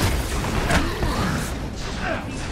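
Explosions boom and crackle in quick succession.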